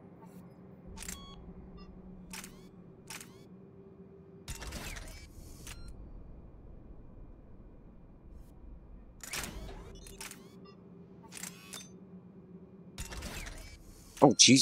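Menu selection sounds click and chime.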